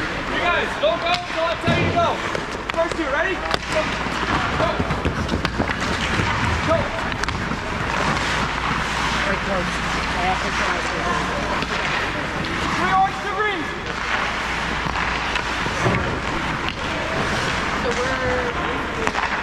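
Young boys chatter and shout in a large echoing ice rink.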